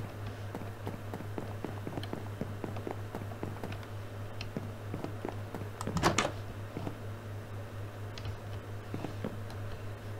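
Footsteps tap quickly across a wooden floor.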